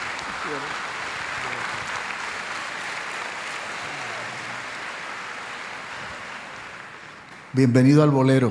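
An audience applauds in a large hall, then fades.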